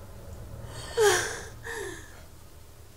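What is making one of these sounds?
A young woman gasps and whimpers in fear.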